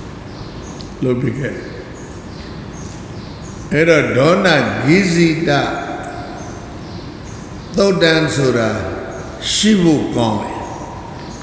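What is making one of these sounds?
An elderly man speaks slowly and with feeling into a microphone, with pauses between phrases.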